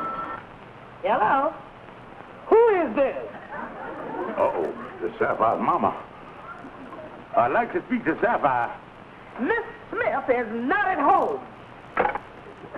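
A woman talks animatedly on a telephone.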